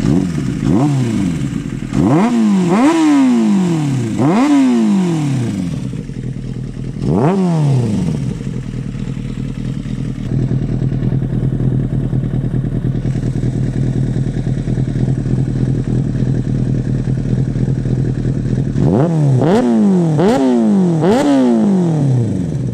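A motorcycle engine revs up sharply in short bursts, close by.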